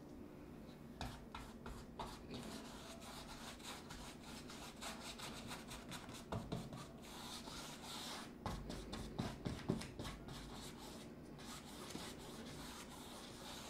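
A brush scrapes and swishes across canvas.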